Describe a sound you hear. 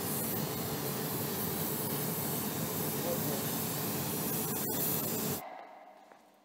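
A spray gun hisses loudly and steadily.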